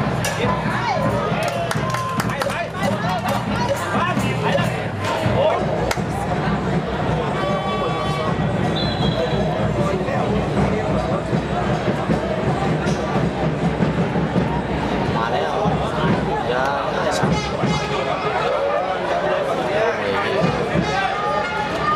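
Men shout across an open outdoor field.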